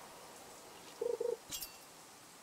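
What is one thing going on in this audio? A short game chime sounds as a fish bites.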